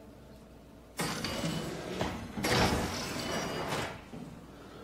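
A heavy metal door slides open with a rumble.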